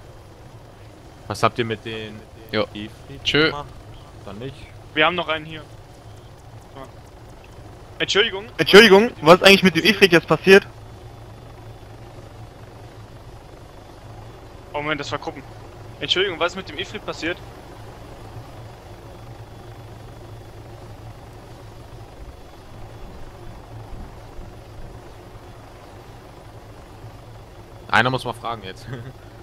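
A helicopter's rotor thumps and whirs nearby.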